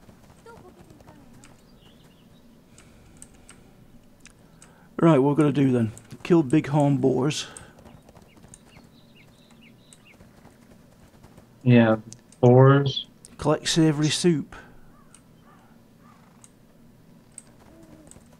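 A horse's hooves clop steadily on a dirt path.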